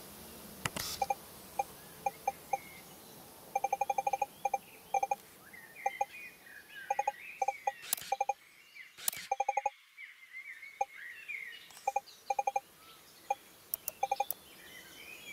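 Short electronic blips sound in quick runs.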